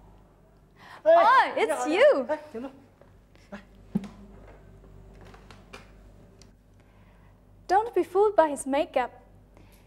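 A young woman speaks animatedly close by.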